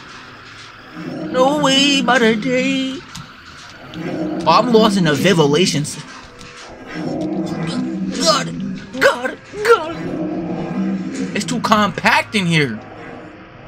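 A young man exclaims loudly in fright.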